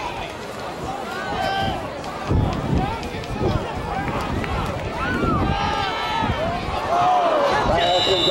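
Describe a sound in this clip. A crowd in the stands cheers and shouts outdoors.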